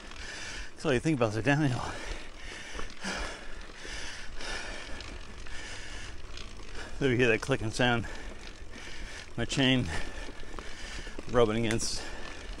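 Bicycle parts rattle over bumps.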